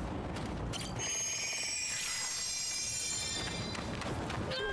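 A bright magical shimmer chimes and rings.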